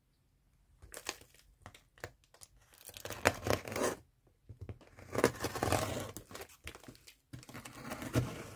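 A knife blade slices through packing tape on a cardboard box.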